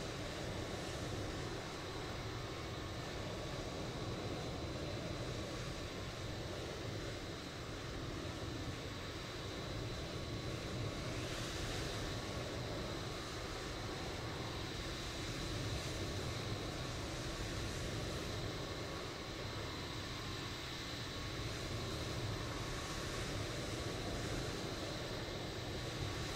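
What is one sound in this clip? Jet engines roar steadily as an airliner rolls along a runway.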